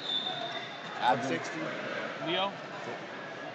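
A man shouts out briefly from the crowd.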